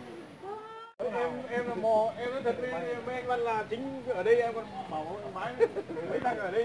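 Several elderly men talk among themselves.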